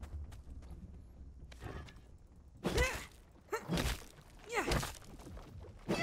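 A pickaxe chips at rock in short knocks.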